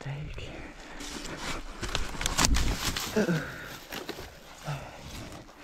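Branches and dry brush crackle and snap against a dirt bike.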